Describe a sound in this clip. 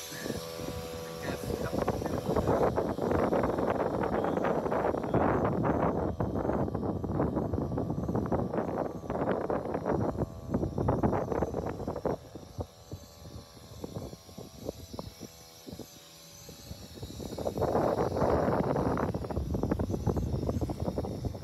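Strong wind buffets and roars outdoors on open water.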